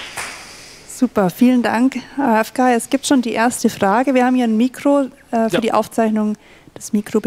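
A young woman speaks with animation through a handheld microphone.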